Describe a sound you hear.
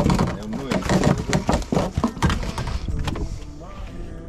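Fish flap and thump on a boat deck.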